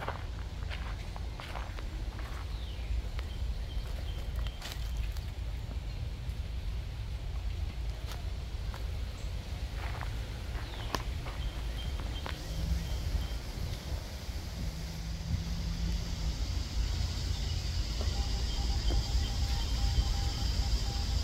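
Wind blows steadily outdoors, rustling leaves.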